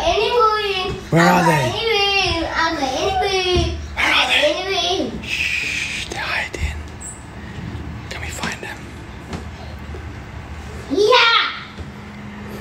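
A young child talks and squeals excitedly close by.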